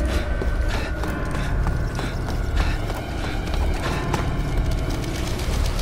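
Boots run on a metal floor.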